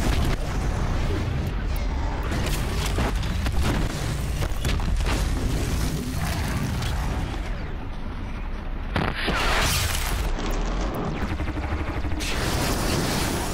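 A launcher fires heavy bursts.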